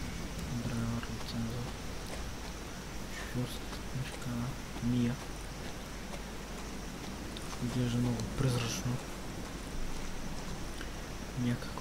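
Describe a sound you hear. Footsteps crunch slowly on dry dirt.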